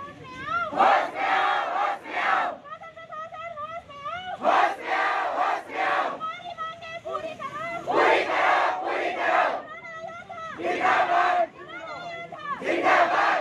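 A crowd of protesters chants slogans loudly in rhythmic bursts, outdoors.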